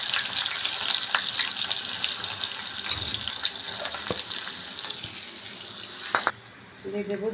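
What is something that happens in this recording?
Oil sizzles loudly as onions fry in a pan.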